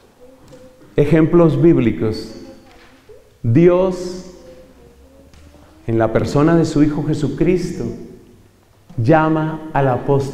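A middle-aged man speaks calmly into a microphone over a loudspeaker, in an echoing hall, with pauses between phrases.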